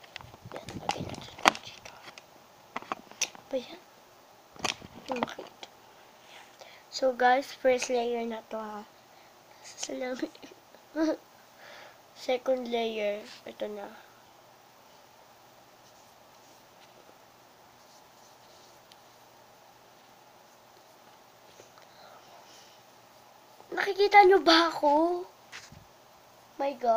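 A young girl talks and sings close to the microphone, in bursts.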